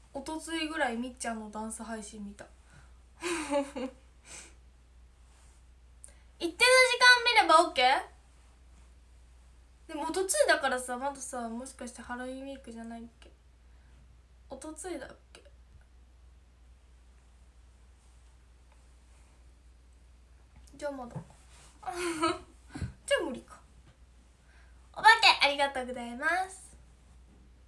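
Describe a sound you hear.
A young woman talks close to a microphone in short bursts with pauses.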